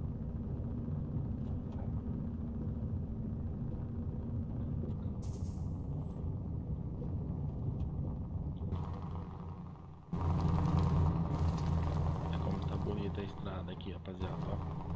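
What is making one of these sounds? A truck's diesel engine rumbles steadily.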